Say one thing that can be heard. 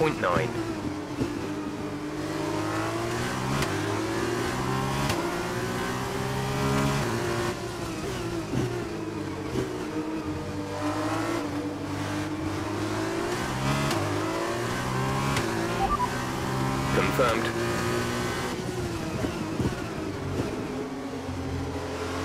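A racing car engine roars and whines, rising and falling in pitch as it shifts gears.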